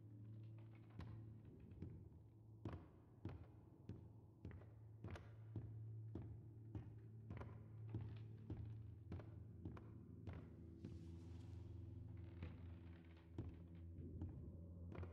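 Footsteps thud on a creaky wooden floor at a steady walking pace.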